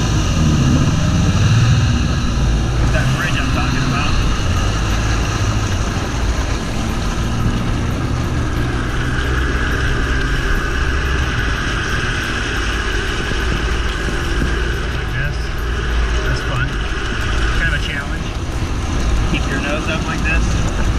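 A jet ski engine drones steadily up close.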